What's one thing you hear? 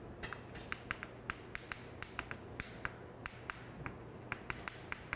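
Chalk taps and scrapes briskly on a board.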